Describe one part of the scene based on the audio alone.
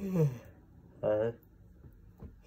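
A young man groans into his hands close by.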